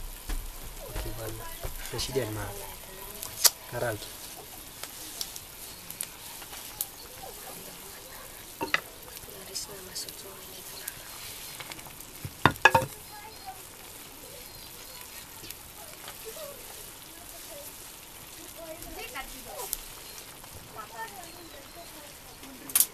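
A fire crackles beneath a pan.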